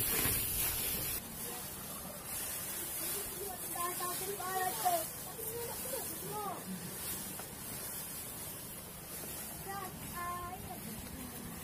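Dry grass rustles as it is gathered by hand.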